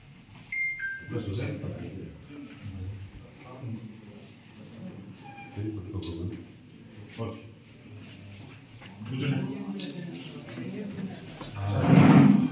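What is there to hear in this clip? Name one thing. Men talk at close range.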